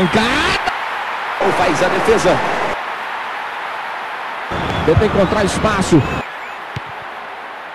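A stadium crowd roars steadily in a football video game.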